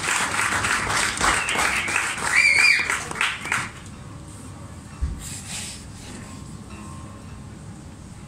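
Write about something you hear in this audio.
A man plays a steel-string acoustic guitar.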